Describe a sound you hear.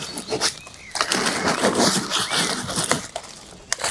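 Dry leaves rustle and crackle as hands handle them.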